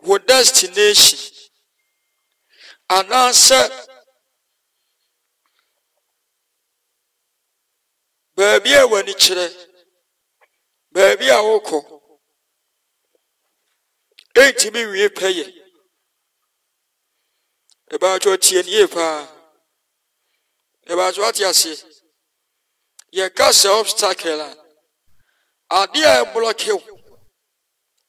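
A man speaks in short bursts with long pauses, heard through an online call.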